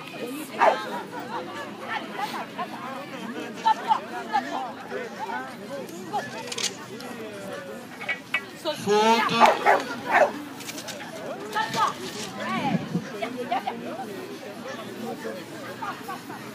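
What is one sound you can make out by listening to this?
A woman calls out commands to a dog with animation.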